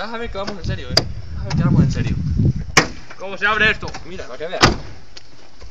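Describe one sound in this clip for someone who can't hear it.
A car door clicks and thumps.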